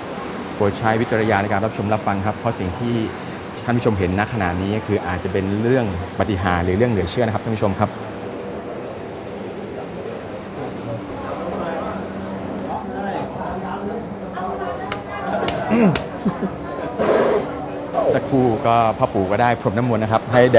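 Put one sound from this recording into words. A group of people chant together.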